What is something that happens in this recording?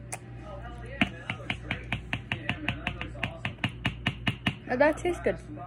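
A young boy sucks and smacks on a lollipop.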